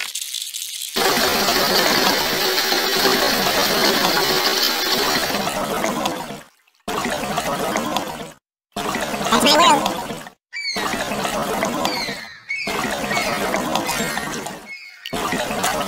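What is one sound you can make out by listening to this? Water bubbles and churns steadily.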